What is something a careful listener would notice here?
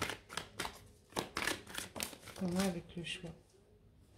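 A card slaps down onto a table.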